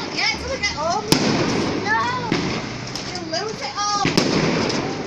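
Whistling fireworks shriek as they rise.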